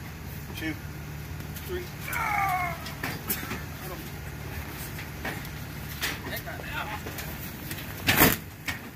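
A car engine idles nearby.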